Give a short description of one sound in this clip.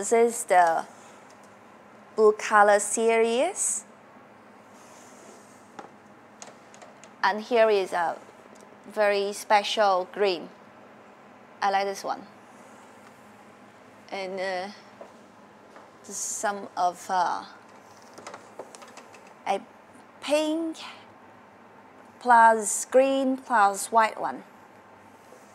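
A young woman speaks calmly and clearly into a close microphone, in short phrases.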